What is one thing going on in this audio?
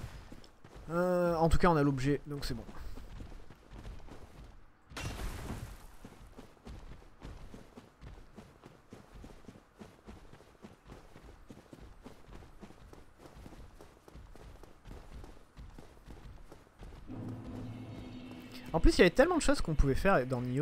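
A young man speaks with animation, close to a microphone.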